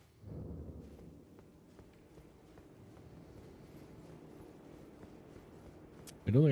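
Footsteps run steadily on a stone floor.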